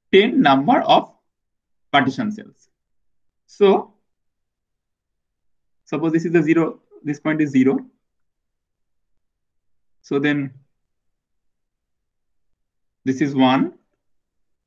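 A man speaks calmly in short phrases through a microphone, with pauses.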